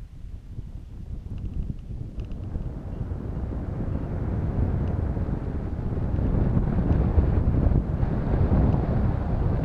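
Wind rushes and buffets loudly, growing stronger.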